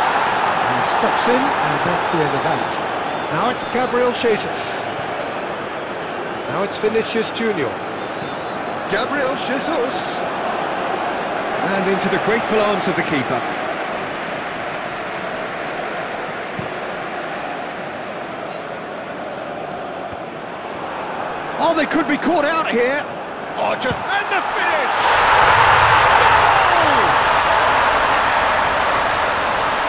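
A large stadium crowd roars steadily, then swells into a loud cheer.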